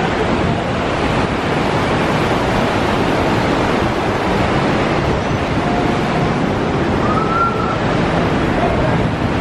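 Wind blows hard and rumbles outdoors.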